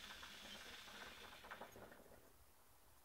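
Water bubbles in a hookah as a young man draws on it.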